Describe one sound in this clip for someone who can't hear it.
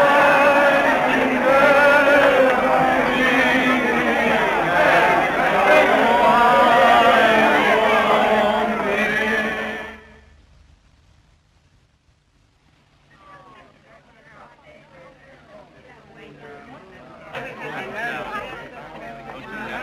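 A crowd of men and women talk and shout loudly.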